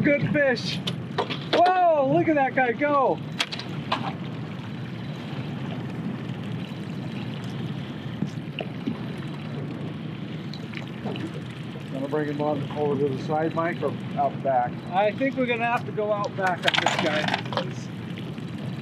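A boat's outboard motor hums steadily.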